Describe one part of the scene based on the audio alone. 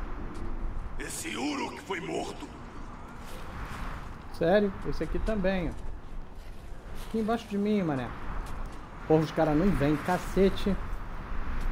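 A middle-aged man talks calmly into a microphone, close by.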